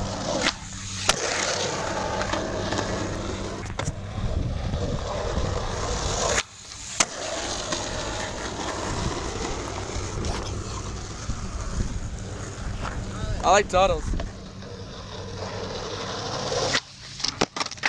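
Skateboard wheels roll and rumble over rough asphalt.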